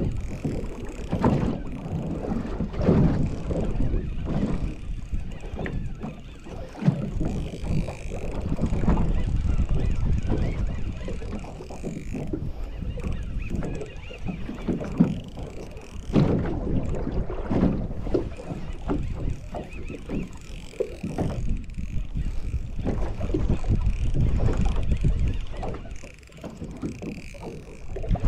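Wind blows outdoors over water.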